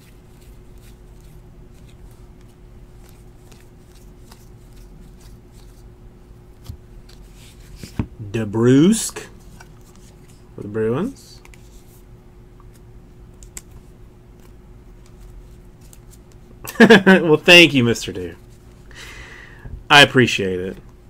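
Trading cards rustle and slide against each other as they are shuffled by hand.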